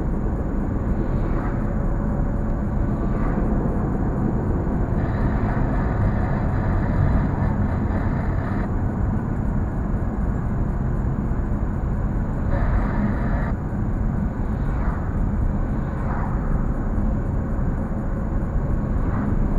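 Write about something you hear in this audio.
Oncoming cars whoosh past.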